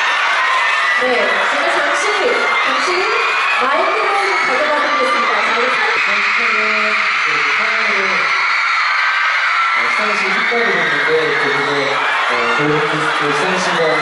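A young man speaks calmly into a microphone over a loudspeaker.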